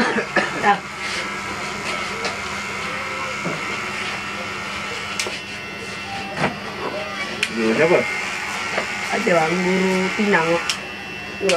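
Electric hair clippers buzz steadily.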